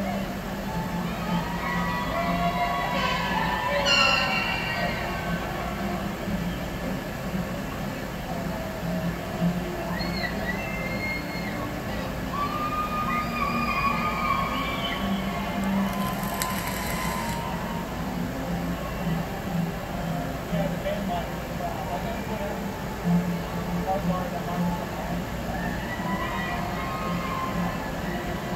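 A crowd cheers and talks in a large echoing hall.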